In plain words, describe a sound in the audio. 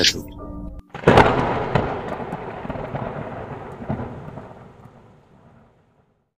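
Thunder rumbles and slowly fades.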